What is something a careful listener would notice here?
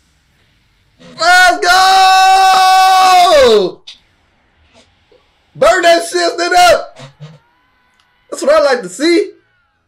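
A young man exclaims loudly with excitement, close by.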